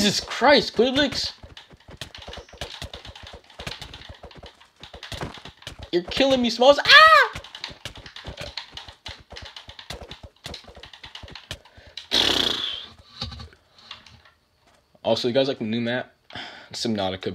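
Buttons on a game controller click rapidly.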